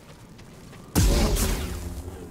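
A lightsaber ignites with a sudden burst.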